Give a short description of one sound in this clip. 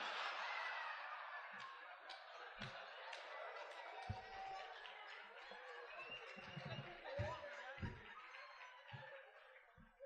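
An audience laughs and murmurs in a large hall.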